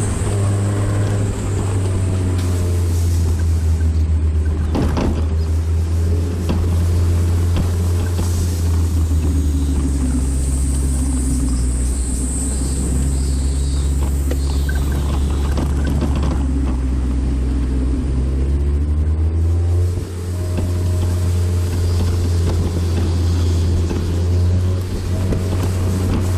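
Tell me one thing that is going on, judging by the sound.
Wind rushes past an open car.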